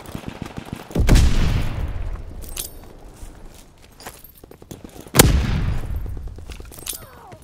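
Loud explosions boom and rumble away.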